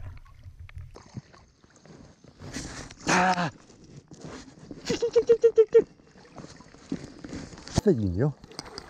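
Shallow water splashes and laps close by.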